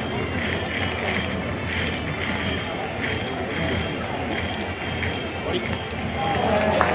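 A large stadium crowd cheers and chants steadily outdoors.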